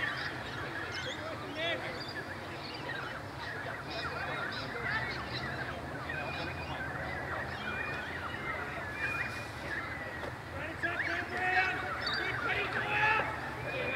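Players and spectators call out in the distance outdoors.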